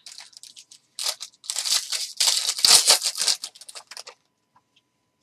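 A foil card pack tears open.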